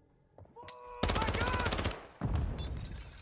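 A stun grenade goes off with a deafening bang and a ringing whine.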